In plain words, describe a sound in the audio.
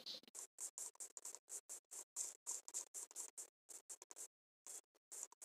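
Quick footsteps crunch on grass.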